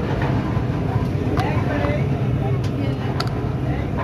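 A plastic lid snaps onto a cup.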